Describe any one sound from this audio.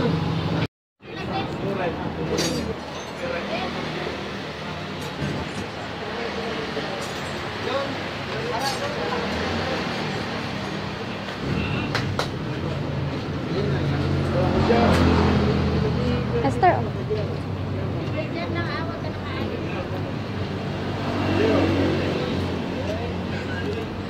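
Several men talk casually nearby.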